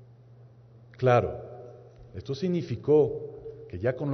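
A man speaks with emphasis into a microphone in a large echoing hall.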